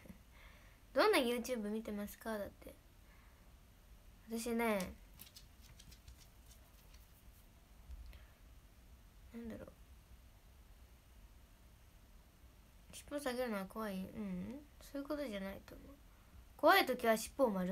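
A young woman speaks softly and haltingly, close to a microphone.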